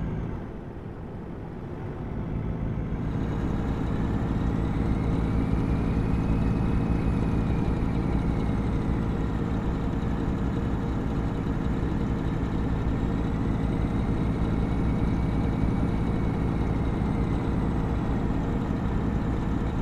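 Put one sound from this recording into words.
A truck engine hums steadily at a low pitch from inside the cab.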